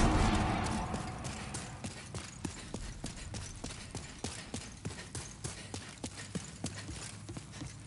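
Armoured footsteps clank steadily on stone.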